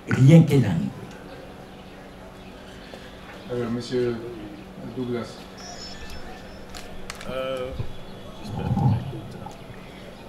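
A man speaks into a handheld microphone, calmly and haltingly.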